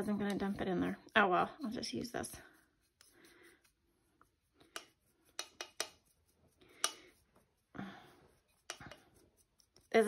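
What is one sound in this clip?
A spoon scrapes and taps against a cup.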